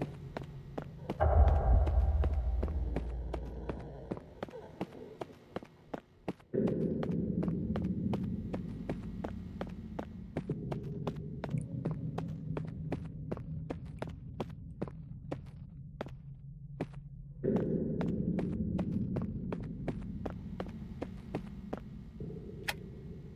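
Footsteps walk steadily on a hard floor.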